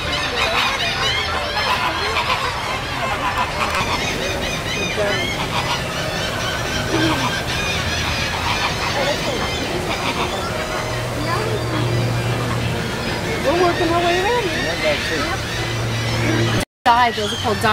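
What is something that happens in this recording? A large flock of birds squawks and calls noisily outdoors.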